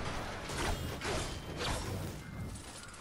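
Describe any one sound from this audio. A pickaxe strikes an object with sharp metallic clangs.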